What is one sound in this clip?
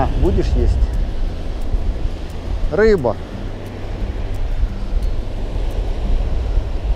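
Waves wash onto the shore steadily.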